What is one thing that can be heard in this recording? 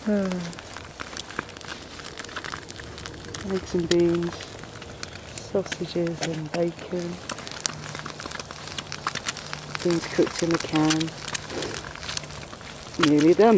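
Eggs sizzle in a frying pan.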